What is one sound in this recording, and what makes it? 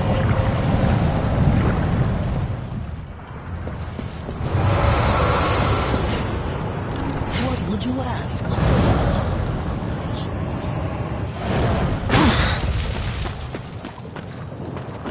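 Lava rumbles and roars steadily.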